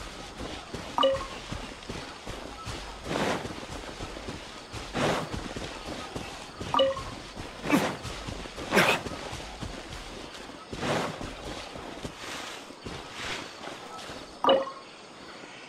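A short chime sounds as an item is picked up.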